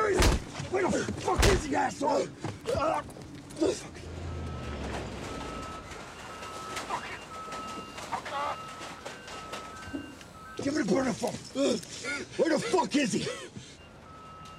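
A man shouts inside a car.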